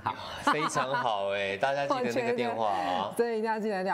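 Two men laugh together.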